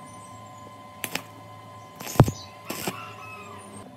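An electric welder crackles and buzzes in short bursts.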